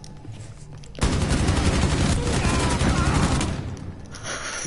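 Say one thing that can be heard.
An automatic rifle fires a rapid, loud burst.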